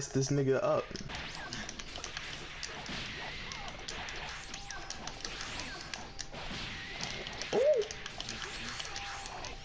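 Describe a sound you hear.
Game sound effects of blasts and whooshes play.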